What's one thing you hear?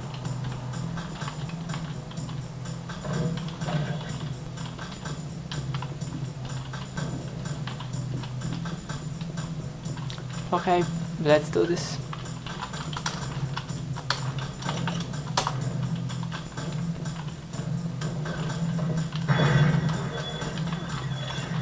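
Game gunfire and effects play from small loudspeakers.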